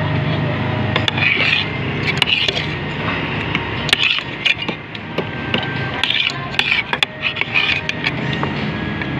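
A metal spoon clinks and scrapes against a bowl.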